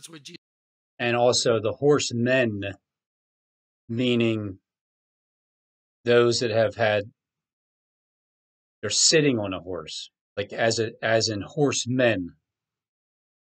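A middle-aged man talks with animation over an online call.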